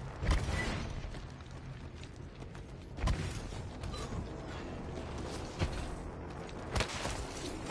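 Heavy footsteps thud on a hard surface.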